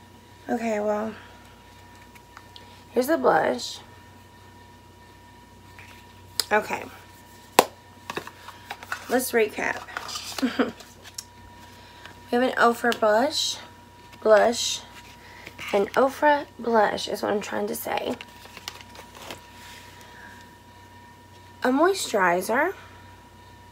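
A young woman talks close to a microphone, in short bursts.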